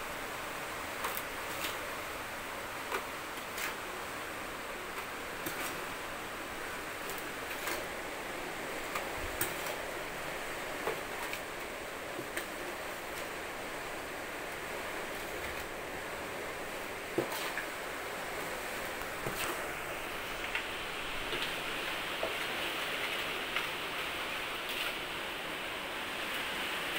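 A small garden fork scrapes through potting soil.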